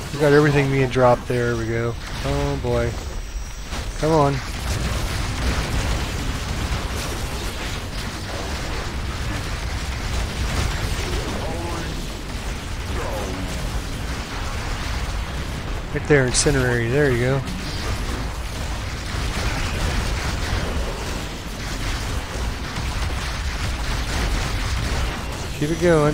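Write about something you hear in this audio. Explosions boom and crackle in a game battle.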